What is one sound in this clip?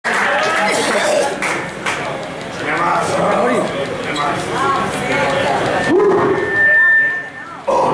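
A crowd of men and women talks and shouts loudly close by in an echoing room.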